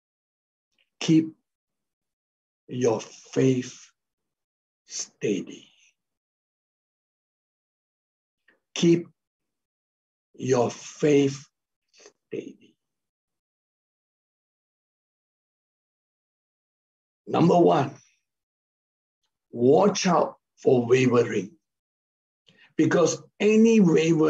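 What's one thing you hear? A middle-aged man speaks with animation over an online call, in short bursts with pauses.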